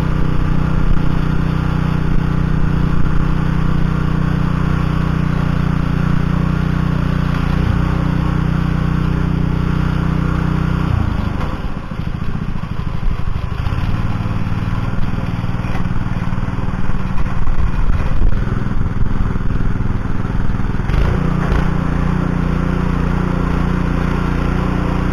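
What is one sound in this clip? The small engine of a garden tiller runs steadily close by.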